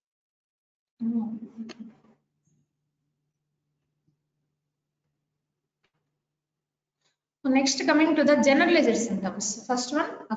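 A woman speaks calmly over an online call, lecturing.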